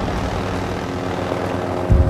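A fire roars and crackles nearby.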